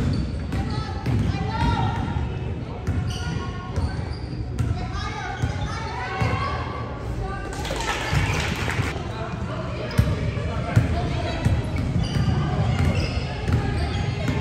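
Young women chatter and call out in a large echoing gym.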